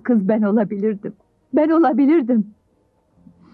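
A woman speaks close by in a tearful, shaky voice.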